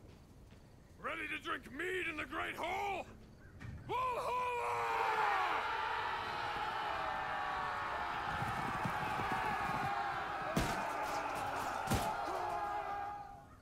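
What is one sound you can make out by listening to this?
A crowd of men chants and roars loudly.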